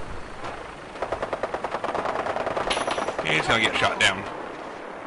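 A helicopter's rotor thumps overhead, growing louder as the helicopter flies by.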